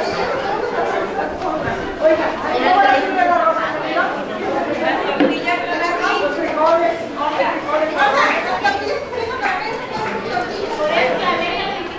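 A middle-aged woman talks with animation close by.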